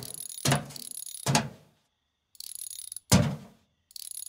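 Metal clanks as a brake caliper is pulled off a car's brake disc.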